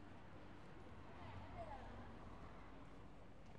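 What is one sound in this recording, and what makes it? A young couple chats as they walk past.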